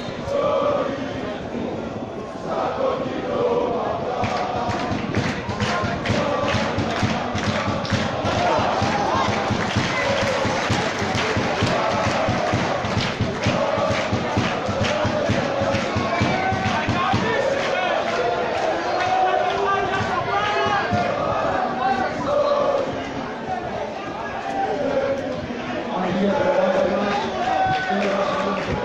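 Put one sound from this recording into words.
A crowd of fans chants and sings loudly nearby, outdoors.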